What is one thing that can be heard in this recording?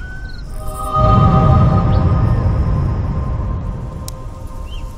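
A bright chime rings out and slowly fades.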